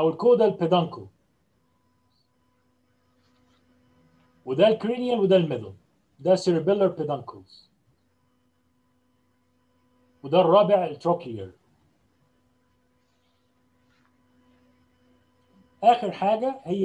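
A middle-aged man speaks calmly through an online call, pausing between phrases.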